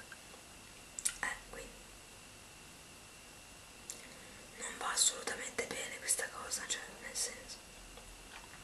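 A young woman speaks quietly and close by, in short bursts.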